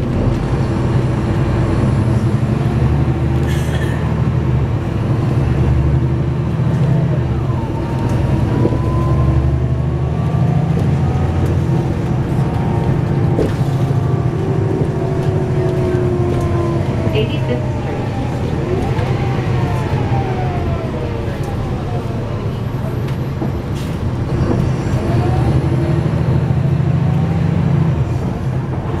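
A bus engine rumbles steadily from inside the bus as it drives along.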